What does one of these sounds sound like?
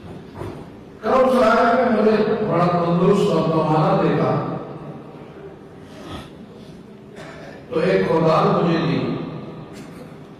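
An elderly man speaks calmly and slowly into a microphone, with pauses.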